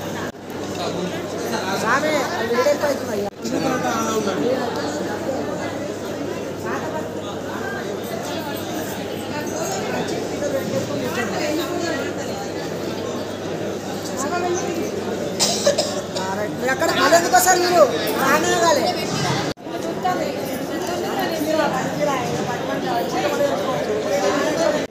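A crowd of men and women chatter all around.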